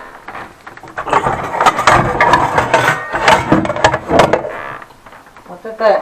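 Metal pots and pans clatter and clank.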